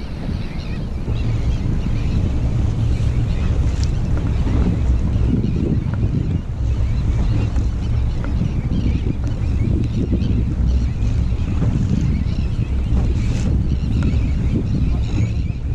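Wind buffets the microphone outdoors on open water.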